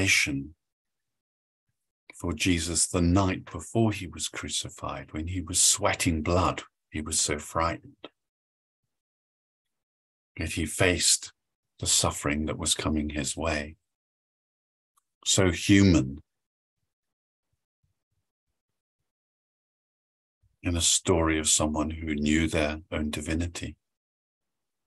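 A middle-aged man speaks calmly through an online call, pausing between phrases.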